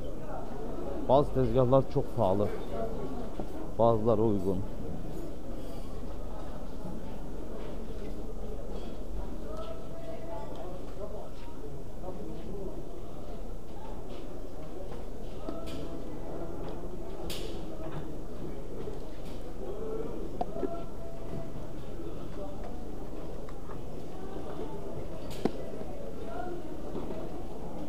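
A crowd murmurs and chatters steadily in a large, echoing hall.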